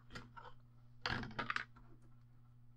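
Metal foil crinkles as it is handled.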